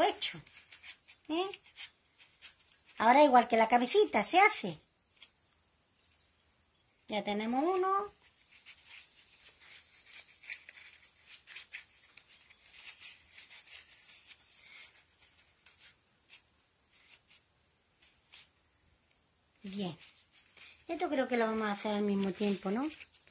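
Cloth rustles softly as hands fold and tuck it.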